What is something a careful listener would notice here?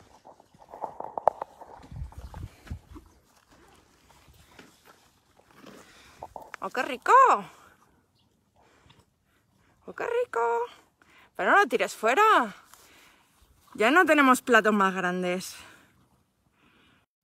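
A horse munches and crunches dry feed close by.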